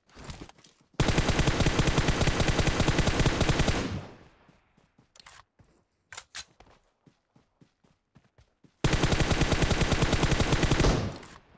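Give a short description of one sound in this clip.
An automatic rifle fires in long rapid bursts, close by.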